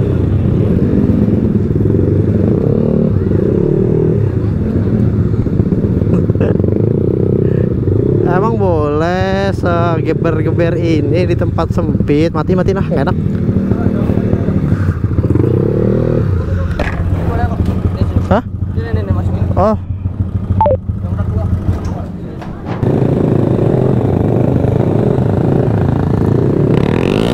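Motorcycle engines rumble close by.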